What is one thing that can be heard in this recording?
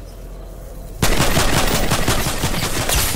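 A pickaxe strikes with rapid hard knocks.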